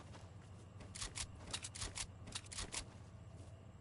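A pickaxe strikes wood in quick, repeated blows.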